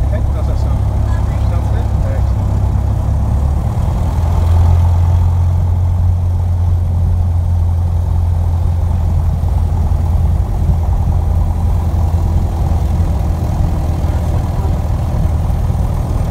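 A small plane's propeller engine drones loudly and steadily from inside the cockpit.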